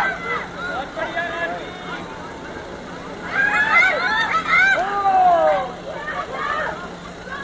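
Young women shout and call out loudly outdoors.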